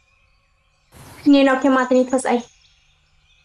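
A young woman speaks briefly and close by.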